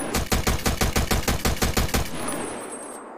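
A rifle fires a rapid burst of shots that echo down a long corridor.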